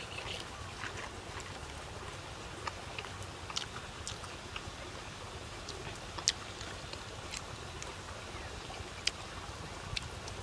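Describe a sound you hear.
A man chews and smacks his lips close by.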